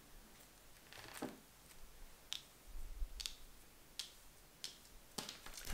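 Cards slide and tap softly on a table.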